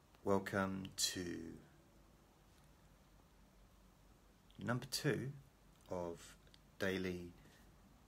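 A middle-aged man speaks close to the microphone, with pauses between short phrases.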